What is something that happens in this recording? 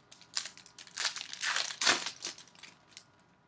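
A plastic wrapper crinkles and tears.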